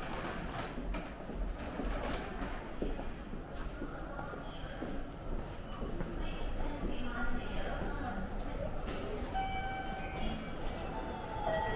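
A crowd of men and women murmurs in the background.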